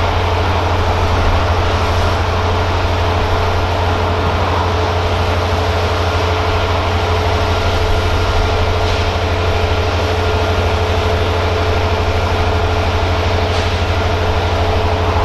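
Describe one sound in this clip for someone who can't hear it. A diesel locomotive engine rumbles and drones steadily nearby.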